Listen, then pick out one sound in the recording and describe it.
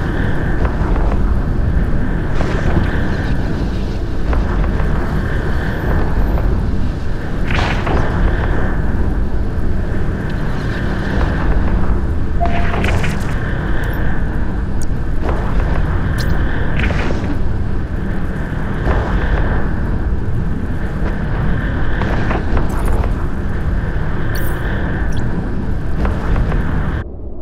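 A deep engine hum drones steadily.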